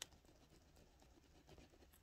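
A pastel stick scrapes softly across paper.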